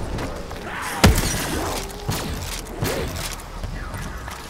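A heavy weapon fires with sharp, booming blasts.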